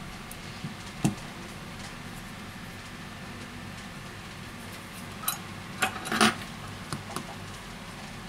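A phone taps and clicks against a mat as hands handle it.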